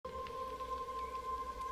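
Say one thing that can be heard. Wind rustles through treetops.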